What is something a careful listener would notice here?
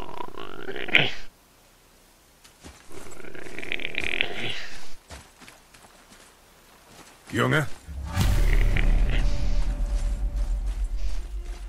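Footsteps crunch on snowy, rocky ground.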